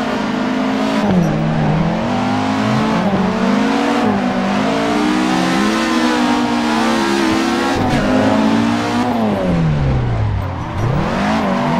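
A car engine revs high, rising and falling in pitch.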